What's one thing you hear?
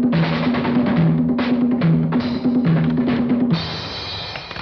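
Drums are played with quick beats.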